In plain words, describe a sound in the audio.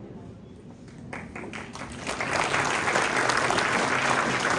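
People applaud and clap their hands.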